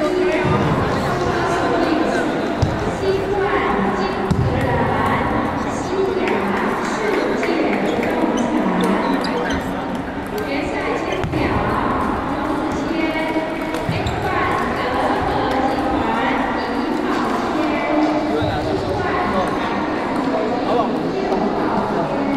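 Table tennis balls click on paddles and tables.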